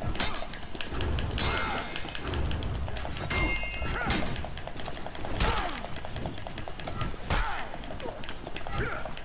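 Swords clash and strike with sharp metallic clangs.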